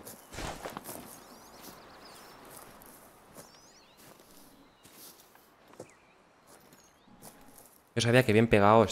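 Footsteps rustle through tall grass and brush.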